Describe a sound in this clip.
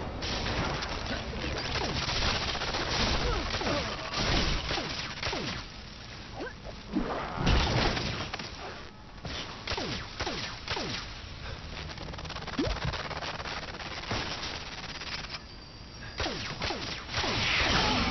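Small pieces clatter and smash.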